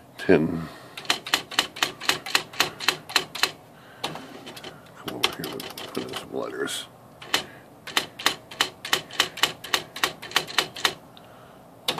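An electric typewriter clacks rapidly as keys are struck.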